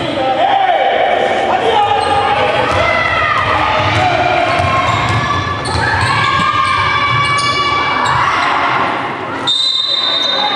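Young women shout and call out to each other in an echoing hall.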